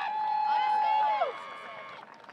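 A marching band's brass plays a loud held chord that stops abruptly.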